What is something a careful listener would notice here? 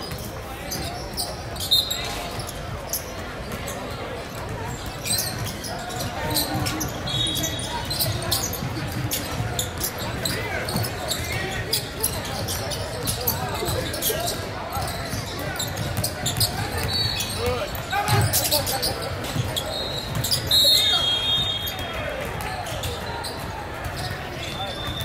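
Voices of players and spectators murmur and call out in a large echoing gym.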